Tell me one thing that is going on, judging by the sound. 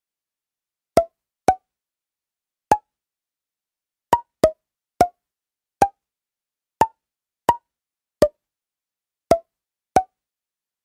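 Short electronic ticks sound from a game as its timer counts down.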